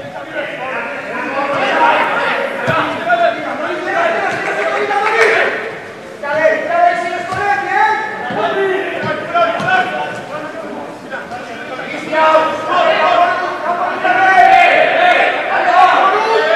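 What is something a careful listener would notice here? A football thuds as players kick it across a grass pitch.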